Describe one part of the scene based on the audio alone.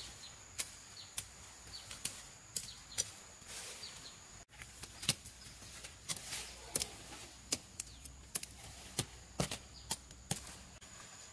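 A blade chops sharply through plant stalks.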